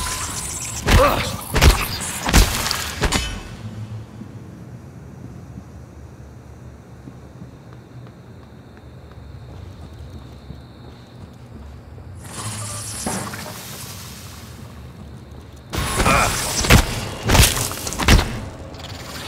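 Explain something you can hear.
A heavy wrench strikes a creature with loud, wet blows.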